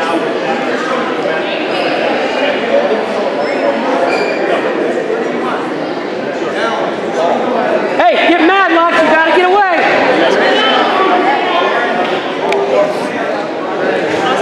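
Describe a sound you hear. A crowd of spectators chatters in a large echoing hall.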